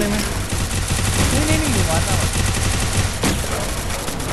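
Gunfire rattles rapidly from a game.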